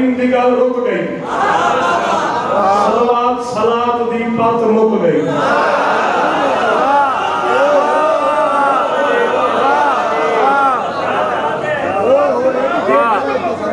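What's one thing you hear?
A man speaks and chants passionately into a microphone, heard through loudspeakers in a reverberant room.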